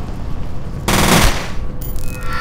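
A rifle fires a short burst of shots in an echoing space.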